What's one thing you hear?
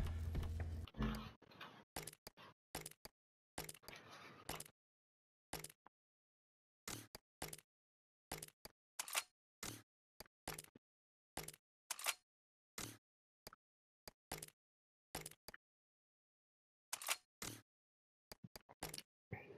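Short electronic menu blips click again and again.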